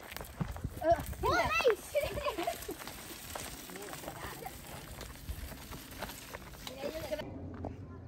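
Children chatter and call out nearby.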